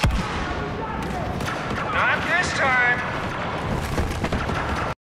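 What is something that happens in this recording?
Laser blasters fire in sharp, quick bursts.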